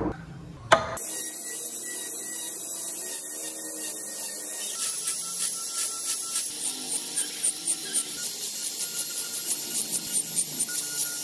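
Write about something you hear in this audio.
A rotary tool whines steadily while carving into wood.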